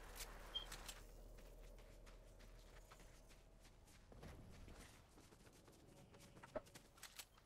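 Footsteps patter quickly on grass and snow.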